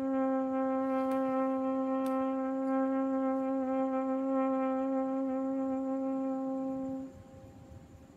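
A trumpet plays one long, steady note up close.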